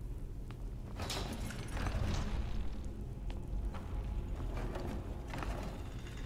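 An icy magic blast hisses and crackles.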